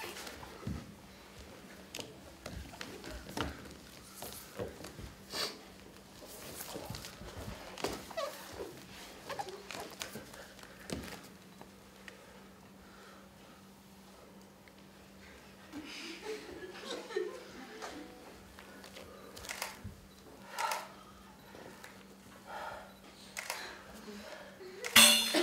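Bare feet and bodies thump and slide on a wooden floor.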